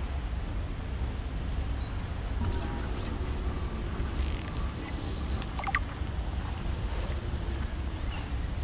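A low, steady underwater rumble drones throughout.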